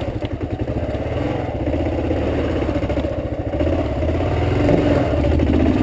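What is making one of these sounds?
A motorcycle engine chugs and revs unevenly close by.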